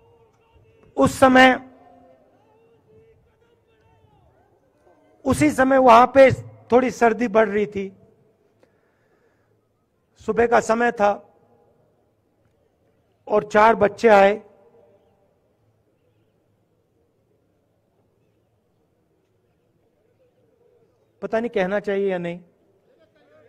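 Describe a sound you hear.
A man speaks in short bursts through a microphone and loudspeakers, with long pauses between.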